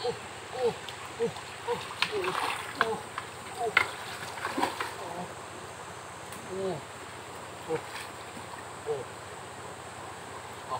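A stream flows steadily over rocks.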